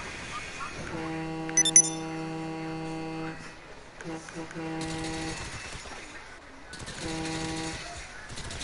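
A bus horn honks several times.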